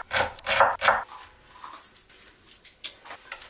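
A knife scrapes chopped vegetables into a pot.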